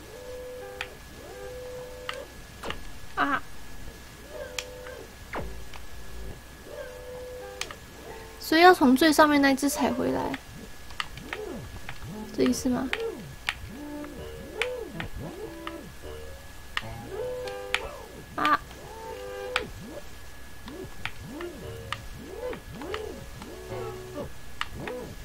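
Quick blips and jumping sounds come from a video game.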